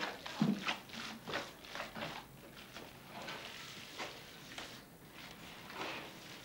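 Hands squelch and squish through wet minced meat.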